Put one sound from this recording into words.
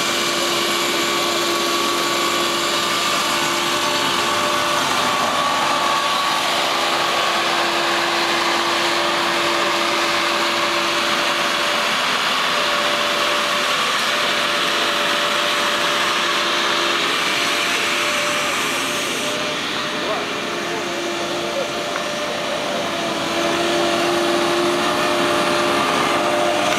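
Mower blades whir as they cut grass.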